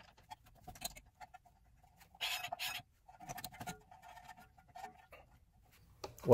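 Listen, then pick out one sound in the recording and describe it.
Metal parts clink and scrape as a brake caliper is fitted by hand.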